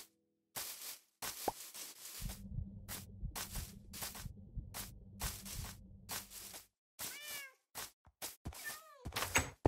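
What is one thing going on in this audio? Footsteps crunch quickly over grass.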